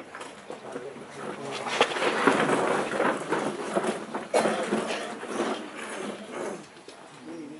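Boots stamp on asphalt as a cadet marches.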